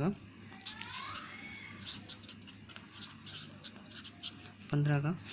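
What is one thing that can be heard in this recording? A felt marker squeaks and scratches across paper in short strokes.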